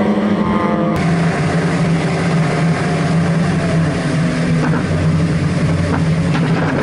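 Another race car engine drones steadily up close.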